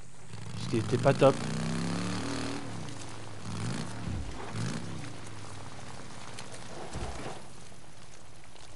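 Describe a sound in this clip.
A motorcycle engine hums and revs.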